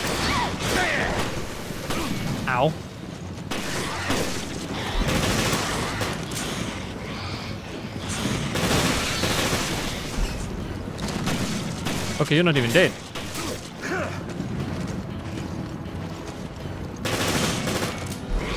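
A creature snarls and growls.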